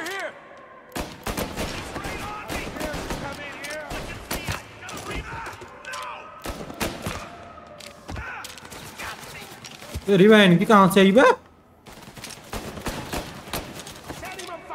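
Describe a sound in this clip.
A pistol fires repeated sharp shots in a large echoing hall.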